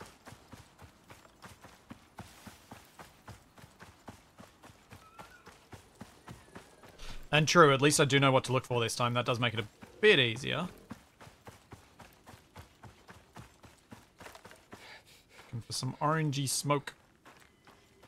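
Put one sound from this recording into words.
Footsteps tread quickly and steadily over soft ground.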